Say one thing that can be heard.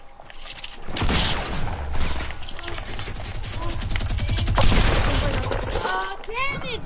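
A gun fires rapid bursts of shots close by.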